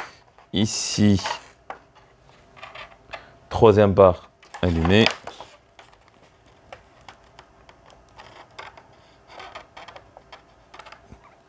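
Wire connectors click and rustle as hands handle them.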